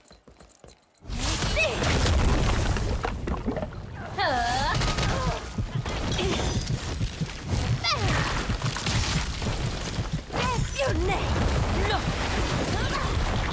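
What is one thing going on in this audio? Fiery explosions boom.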